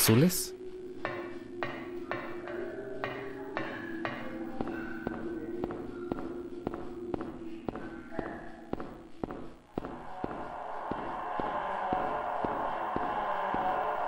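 Footsteps echo steadily along a stone tunnel.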